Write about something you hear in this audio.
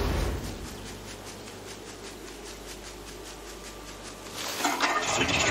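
Footsteps patter on grass.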